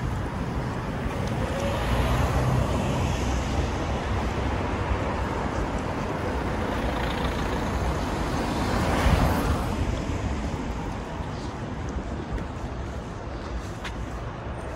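Cars drive past, their tyres rumbling on the road.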